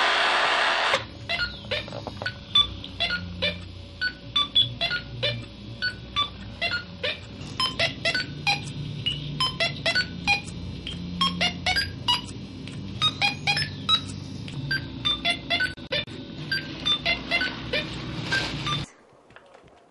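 A small motor clicks and ticks in an uneven rhythm.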